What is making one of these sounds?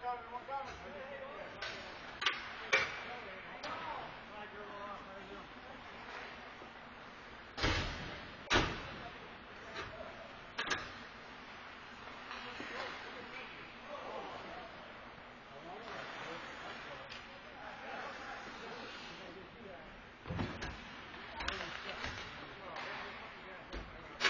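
Hockey sticks and pucks clack sharply.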